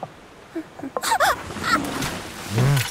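A young girl makes short playful squeaks close by.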